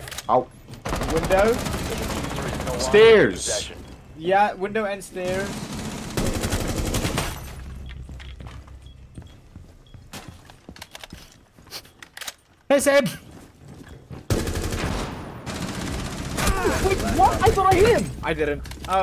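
Gunshots fire in quick bursts from a game.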